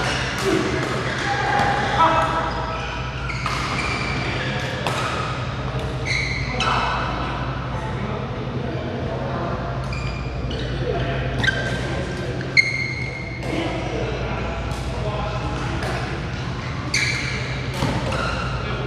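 Shuttlecocks are struck with sharp taps from rackets in a large echoing hall.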